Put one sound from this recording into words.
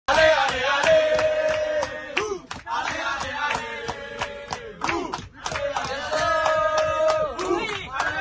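Young people clap their hands to a beat.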